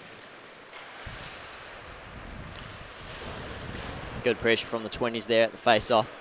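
Ice skates scrape and hiss across the ice in a large echoing rink.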